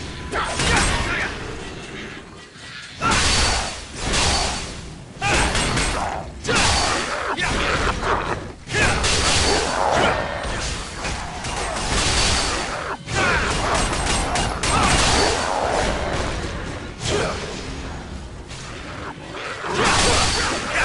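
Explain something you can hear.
Swords clash and slash in a fight, with bursts of impact sounds.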